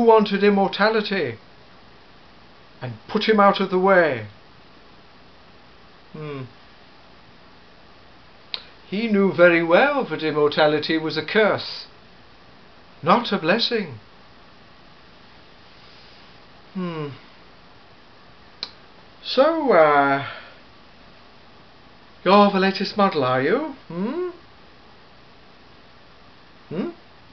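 A middle-aged man speaks expressively in bursts with pauses, close by.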